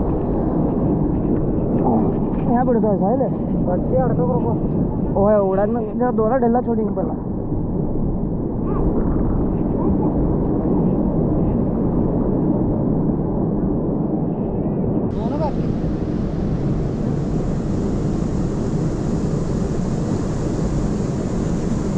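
Water rushes and churns loudly, outdoors.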